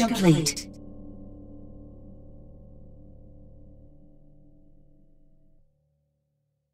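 A game's stage-complete jingle plays with a falling sweep, then a low hum that slowly fades out.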